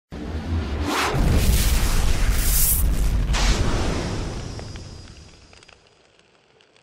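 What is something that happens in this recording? A fiery blast roars with a deep rumble, then slowly fades.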